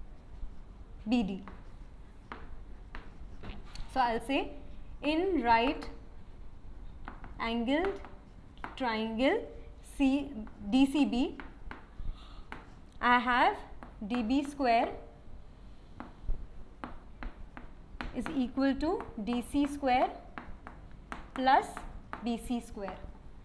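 A young woman speaks calmly and explains nearby.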